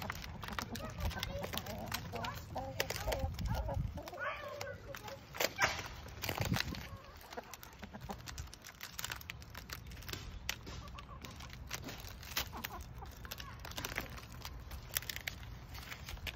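Chickens cluck and murmur nearby.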